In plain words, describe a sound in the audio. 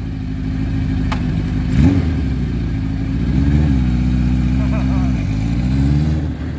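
A motorcycle engine idles and revs loudly up close.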